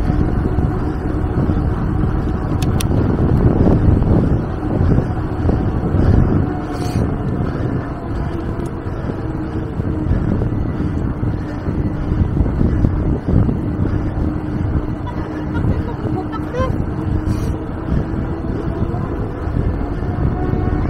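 Wind rushes and buffets steadily outdoors.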